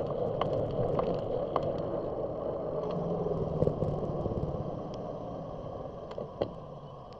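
Bicycle tyres hum on asphalt.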